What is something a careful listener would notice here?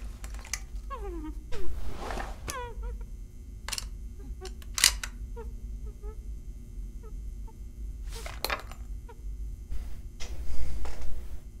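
Metal clicks as cartridges are loaded into a revolver's cylinder.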